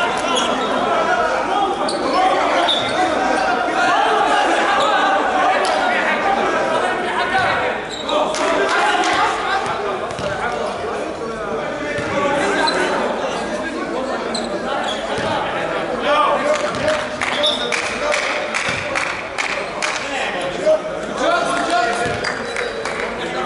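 Men talk and call out to each other in a large echoing hall.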